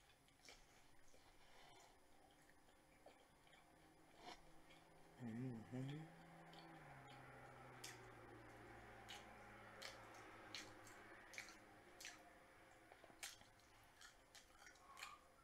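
Food crackles and clicks as fingers pick it apart.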